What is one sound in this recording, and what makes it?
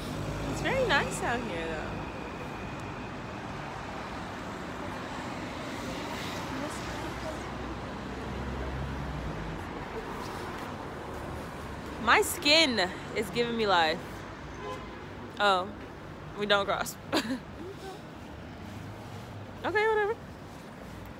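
A young woman talks close to the microphone outdoors.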